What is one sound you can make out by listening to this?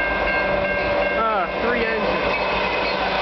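A train horn blares and drops in pitch as the train passes close by.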